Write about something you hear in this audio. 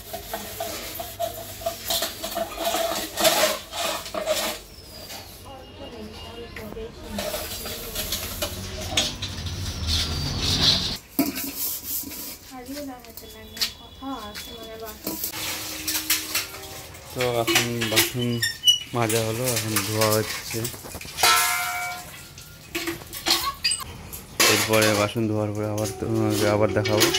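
Metal dishes clink and clatter.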